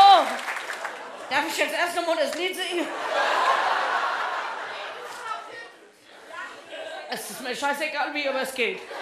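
A man speaks with animation to an audience in a hall.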